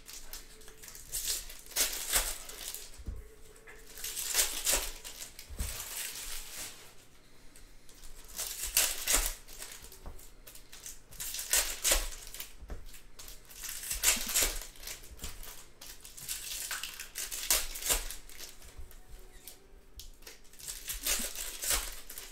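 Foil wrappers crinkle and rustle as they are torn open.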